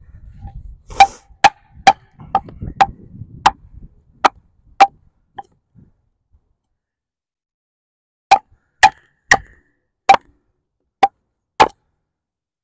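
A wooden baton knocks sharply on a knife blade again and again.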